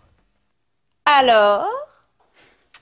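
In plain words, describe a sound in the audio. A young woman speaks briefly and playfully.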